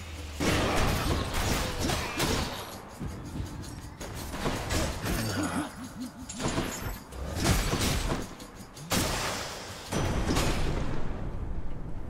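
Magic blasts burst loudly.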